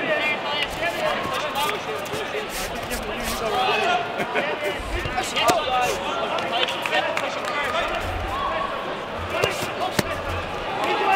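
Fighters' kicks and punches thud against padding.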